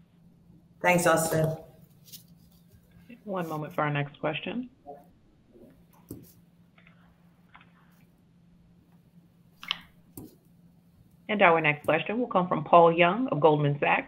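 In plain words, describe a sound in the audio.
A middle-aged woman speaks through a microphone over an online call, pausing between phrases.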